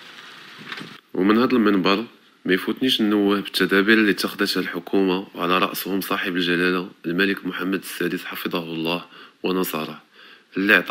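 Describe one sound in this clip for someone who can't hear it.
A young man speaks calmly and steadily into a close microphone.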